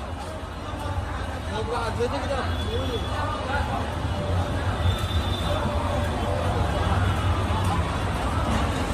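A large crowd of men chants and shouts at a distance outdoors.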